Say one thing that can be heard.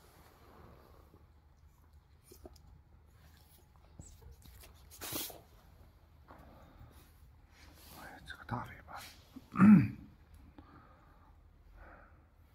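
Puppies scuffle and scratch on a wooden floor.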